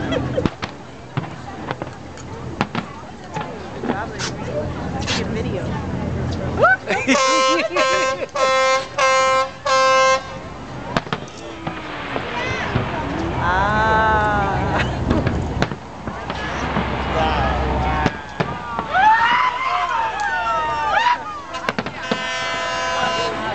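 Fireworks boom and crackle in the distance.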